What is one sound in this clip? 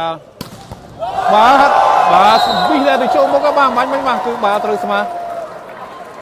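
A large crowd cheers and shouts in an echoing indoor hall.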